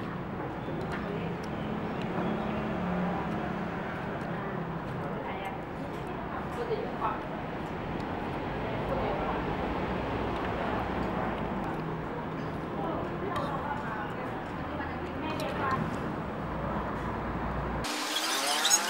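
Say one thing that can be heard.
Cutlery clinks against a bowl.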